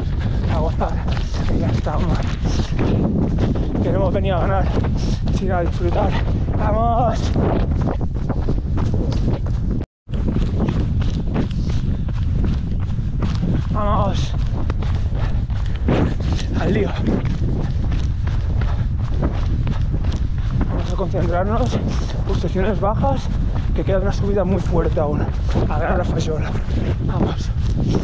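A man talks breathlessly into a close microphone.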